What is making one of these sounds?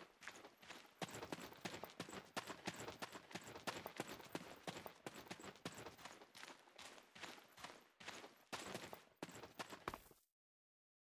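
Quick footsteps run over the ground.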